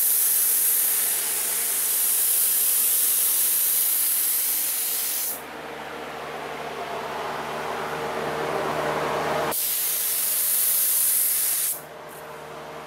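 A spray gun hisses steadily.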